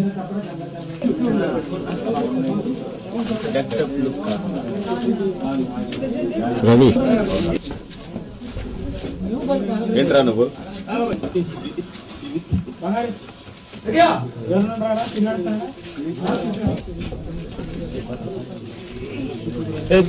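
A man speaks with animation nearby.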